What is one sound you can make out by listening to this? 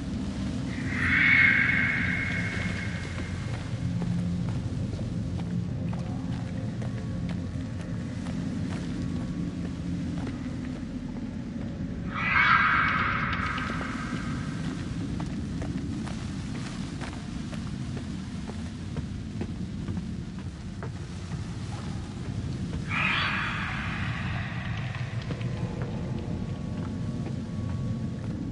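Footsteps crunch slowly over rough ground.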